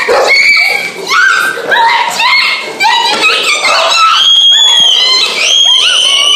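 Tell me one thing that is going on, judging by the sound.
A young girl laughs loudly.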